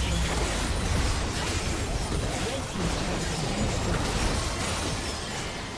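Spell blasts crackle and boom in a busy video game fight.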